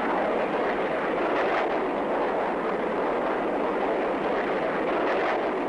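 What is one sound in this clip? A jet aircraft roars loudly overhead in a steady rush.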